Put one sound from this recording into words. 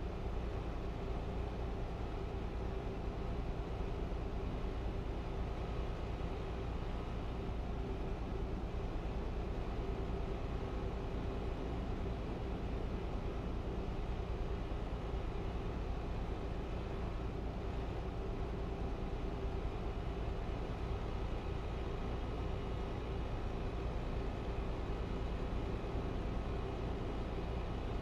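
Tyres roll steadily on a highway.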